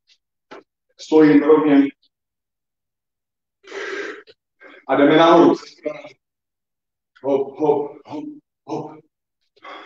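A man speaks in short bursts, heard through an online call.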